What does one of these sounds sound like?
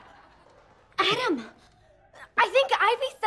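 A young woman speaks, close by.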